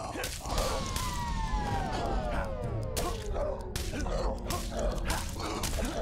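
Sharp sword hits and impacts clang in a game fight.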